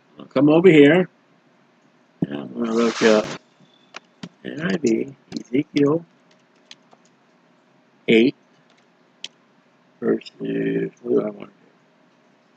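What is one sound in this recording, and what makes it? A middle-aged man speaks casually into a computer microphone in short bursts.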